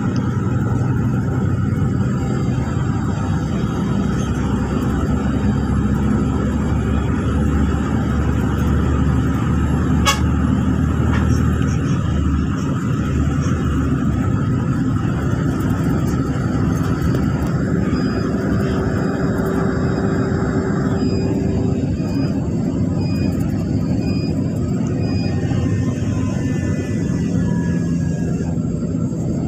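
A vehicle's engine drones steadily with a low road rumble.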